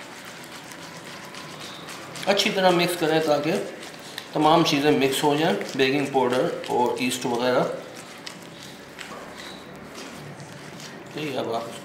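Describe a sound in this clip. Hands squish and stir wet batter in a metal bowl.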